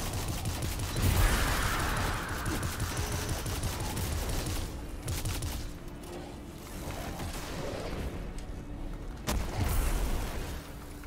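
A blast booms loudly.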